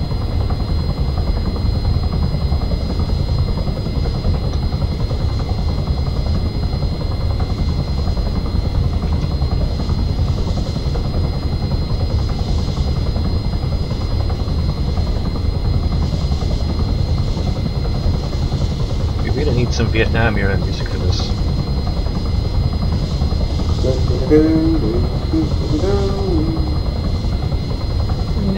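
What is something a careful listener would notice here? A helicopter's rotor blades thump steadily with a low engine roar.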